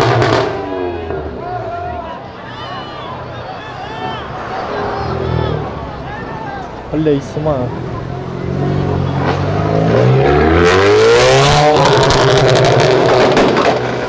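A car engine revs loudly, rising and falling.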